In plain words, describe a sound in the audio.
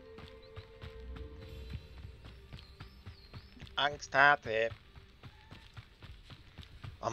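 Footsteps run on a dirt path.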